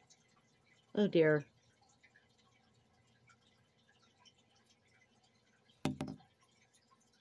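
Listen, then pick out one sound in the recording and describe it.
A middle-aged woman speaks briefly and calmly, close by.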